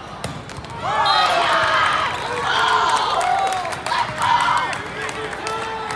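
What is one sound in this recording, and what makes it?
Young players cheer and shout in a large echoing hall.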